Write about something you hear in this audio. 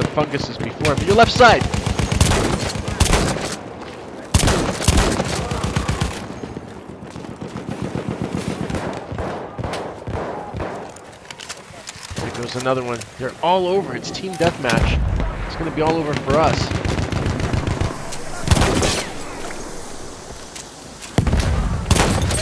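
Gunshots boom loudly, one at a time.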